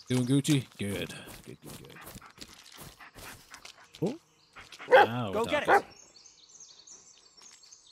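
Footsteps crunch on dry leaves.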